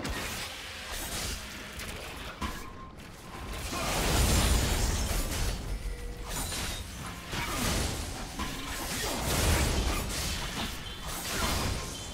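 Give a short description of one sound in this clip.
Game spell effects whoosh and crackle in a fight.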